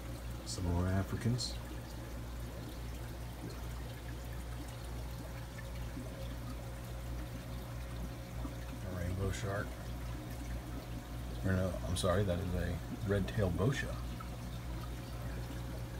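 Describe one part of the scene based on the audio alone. Air bubbles gurgle steadily through water.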